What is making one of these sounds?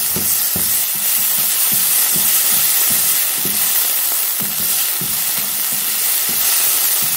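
Vegetables sizzle and hiss in hot oil in a pan.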